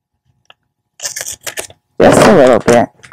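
Scissors snip through wrapping paper.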